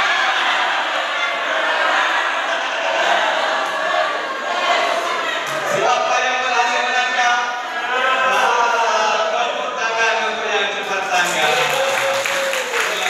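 A crowd of men and women chatter and sing loudly in an echoing hall.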